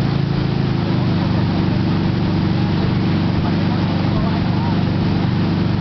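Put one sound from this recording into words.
Water sprays and splashes loudly behind a wakeboard.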